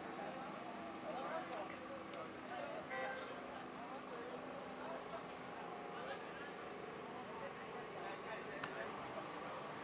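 Several people talk at a distance outdoors.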